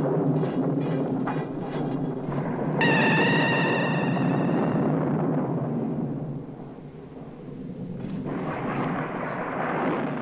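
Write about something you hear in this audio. A shovel scrapes and digs into soil.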